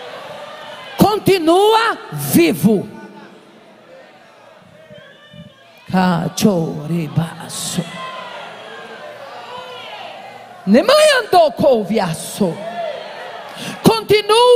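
A woman preaches loudly and with passion into a microphone, heard through loudspeakers in an echoing hall.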